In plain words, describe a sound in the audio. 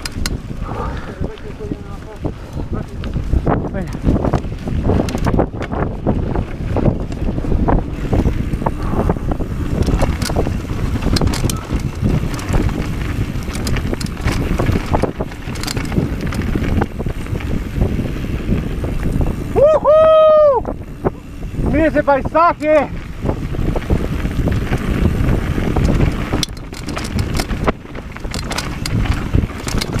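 Mountain bike tyres rattle and crunch over a dry dirt trail.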